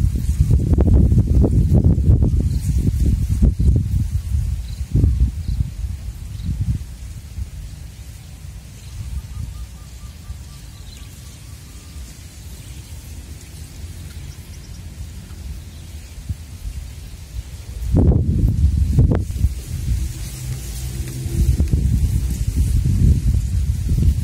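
Wind gusts and rumbles against the microphone outdoors.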